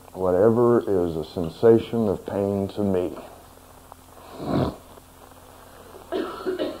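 A man talks calmly and closely into a microphone.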